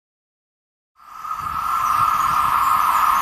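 A high-speed train approaches with a loud rushing roar.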